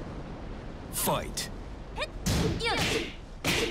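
Fighters trade blows with sharp thuds and impacts.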